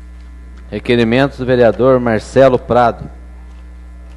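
A man speaks loudly and with emphasis through a microphone.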